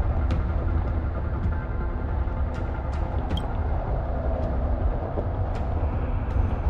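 Wind blows steadily with a low rumble.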